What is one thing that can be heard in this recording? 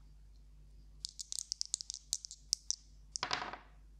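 Dice rattle quickly in a cupped hand.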